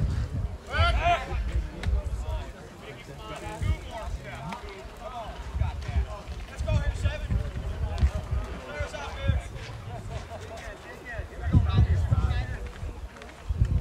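Young men call out and chatter across an open field at a distance.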